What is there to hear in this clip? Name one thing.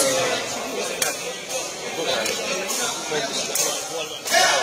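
A player's foot kicks a cane ball with a sharp tap.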